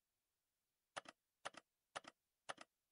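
Short double clicks sound four times as buttons are pressed.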